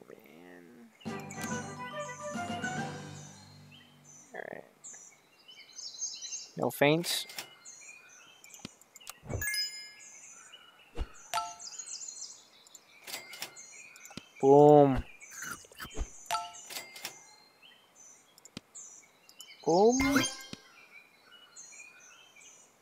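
Light plinking game chimes ring throughout.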